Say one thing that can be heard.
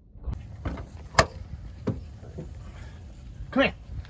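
A car's tailgate thumps.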